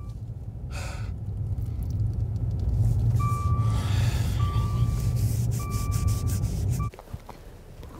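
An elderly man speaks anxiously.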